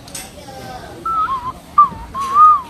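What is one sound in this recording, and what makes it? A young woman plays a few notes on an ocarina.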